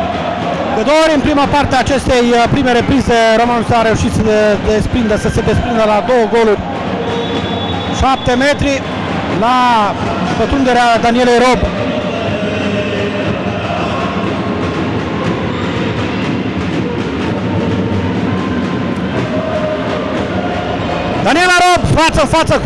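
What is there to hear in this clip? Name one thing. A crowd of spectators chants and cheers loudly.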